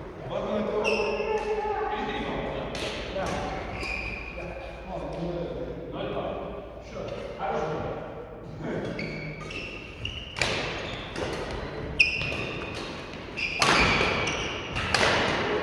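Shuttlecocks pop off badminton rackets again and again.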